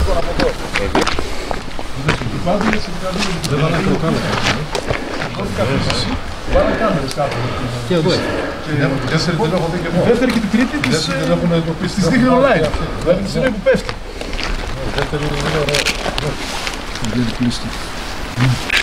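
Middle-aged men talk with animation outdoors, close by.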